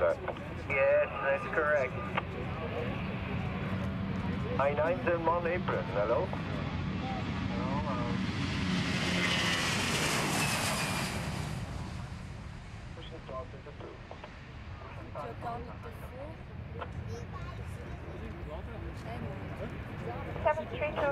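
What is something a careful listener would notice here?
A jet airliner's engines roar as it speeds down the runway and takes off, the roar swelling as it passes close and then fading into the distance.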